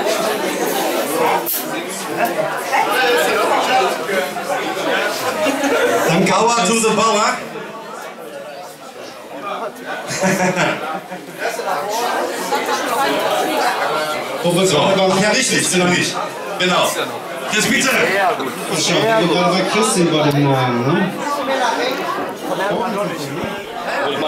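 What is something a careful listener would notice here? A band plays loudly in a crowded room.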